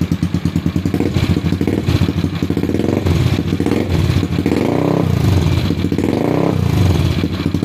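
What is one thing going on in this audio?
A bored-out 200cc scooter engine revs up in short bursts through an aftermarket exhaust.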